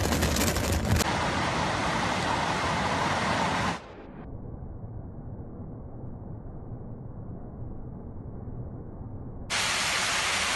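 Muddy floodwater rushes and churns.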